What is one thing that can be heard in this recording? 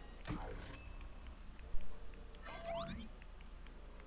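Small coins jingle as they are picked up.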